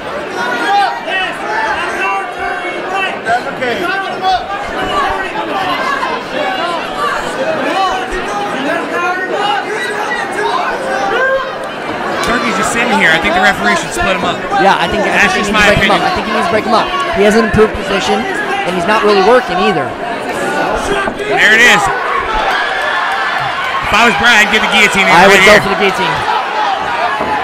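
A crowd of spectators shouts and cheers around the fight.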